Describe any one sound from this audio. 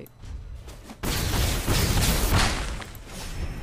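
A heavy crashing impact sounds as creatures attack.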